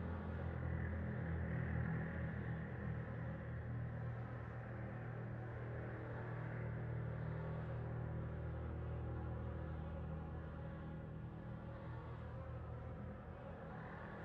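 A low electric hum drones steadily.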